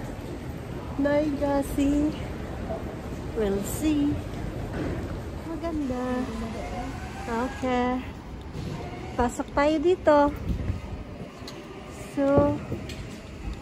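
A young woman talks cheerfully and laughs close by.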